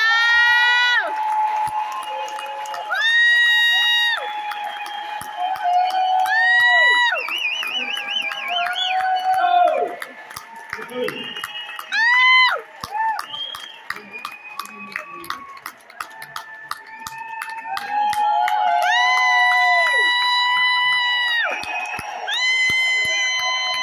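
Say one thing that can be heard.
Singers sing long held notes loudly over a speaker system in a large hall.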